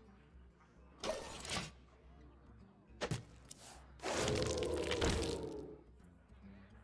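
Loud magical whooshes and bursts ring out as game cards are played.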